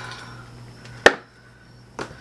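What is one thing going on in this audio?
A small case clicks shut.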